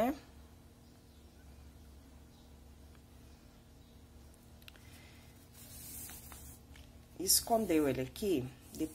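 Yarn rustles softly as it is pulled through stitches.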